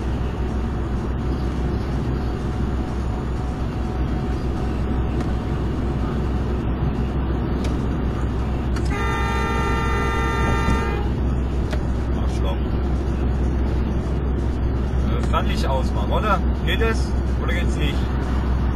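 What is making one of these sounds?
A car engine hums steadily, with tyres rumbling on the road.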